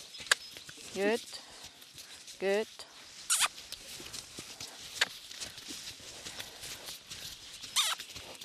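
Hooves thud softly on sand as a horse moves.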